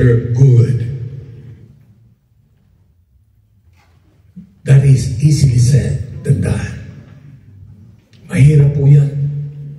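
A man speaks into a microphone over loudspeakers, in a large room with echo.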